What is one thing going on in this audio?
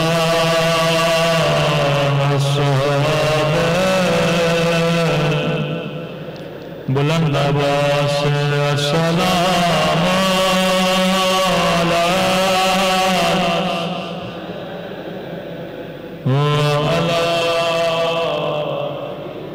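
A man recites in a loud, sustained chanting voice through a microphone, in an echoing hall.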